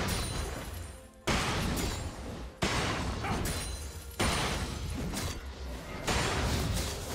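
Video game combat effects whoosh, clash and crackle in quick bursts.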